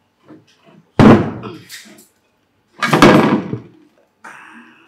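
A pot lid clinks on a table.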